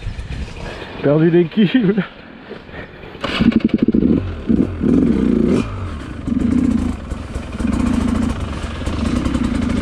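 A motorbike engine sputters and revs loudly in short bursts.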